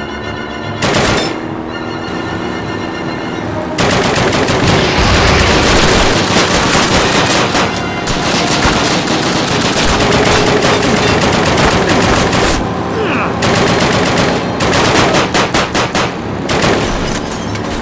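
A mounted machine gun fires rapid bursts.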